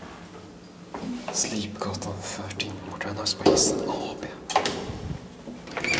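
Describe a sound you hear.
A metal cage gate rattles and clanks close by.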